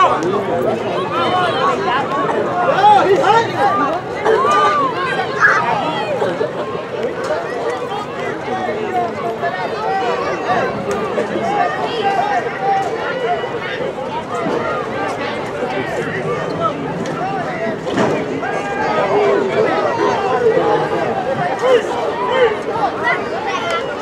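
A crowd of children and adults chatter and shout nearby outdoors.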